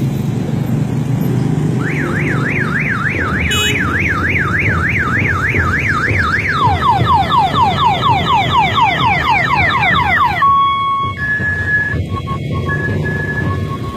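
Motorcycle tricycles putter past.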